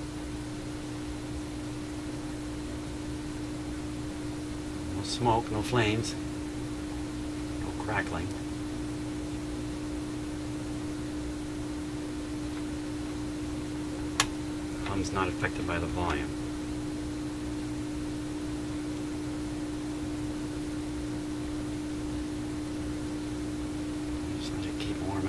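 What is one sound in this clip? An amplifier hums steadily.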